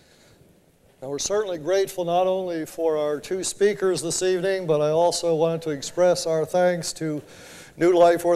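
A middle-aged man speaks calmly through a loudspeaker in an echoing hall.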